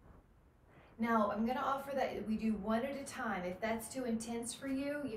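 A young woman talks with animation, close by.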